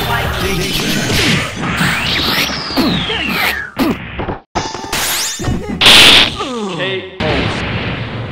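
Punches and blasts crash with loud impacts.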